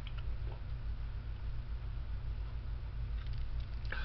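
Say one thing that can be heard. A man gulps a drink from a can.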